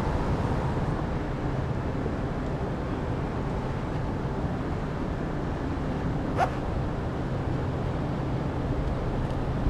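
A lift rumbles steadily as it rides up.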